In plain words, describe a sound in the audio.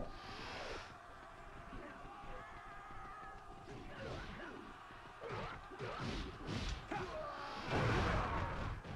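Blades slash and strike in a battle.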